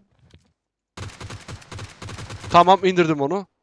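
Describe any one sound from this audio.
Rapid gunshots fire in a quick burst.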